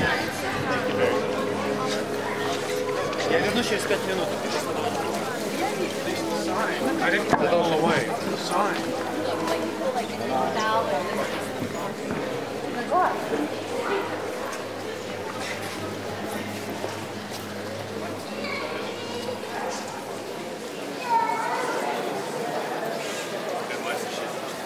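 Footsteps shuffle on a stone floor.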